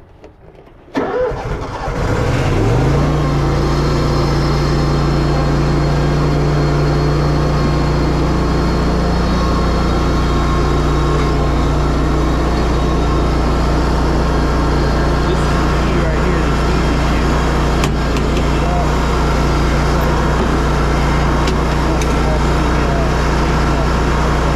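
A mower engine starts up and then runs with a steady loud drone.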